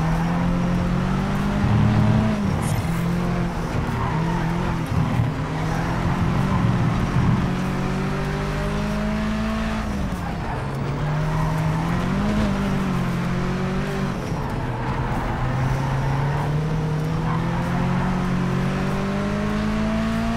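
A car engine roars steadily, rising and falling in pitch as it speeds up and slows down through bends.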